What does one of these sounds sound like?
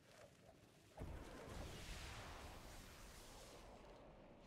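A loud whooshing rush swells and fades.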